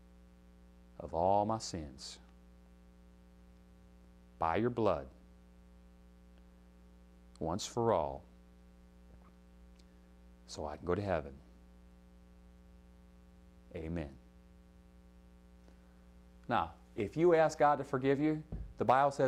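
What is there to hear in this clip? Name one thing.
A young man speaks slowly in short phrases, with long pauses.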